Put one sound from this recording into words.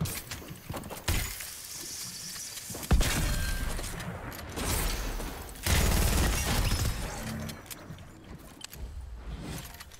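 Video game building pieces snap into place with clicks.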